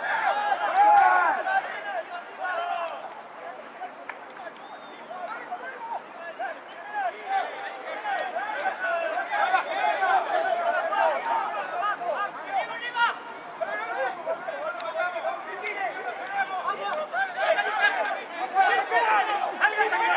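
Players shout and call to each other outdoors.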